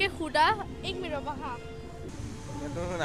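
A young woman asks questions into a microphone, heard close.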